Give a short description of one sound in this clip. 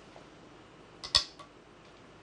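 A game stone clicks sharply onto a wooden board.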